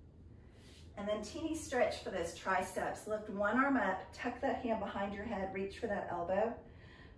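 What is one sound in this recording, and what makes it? A woman speaks calmly and clearly, close by.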